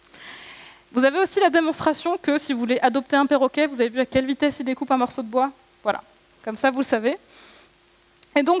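A woman speaks with animation through a microphone in a large hall.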